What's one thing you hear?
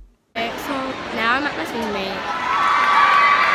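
A young girl talks close to a microphone.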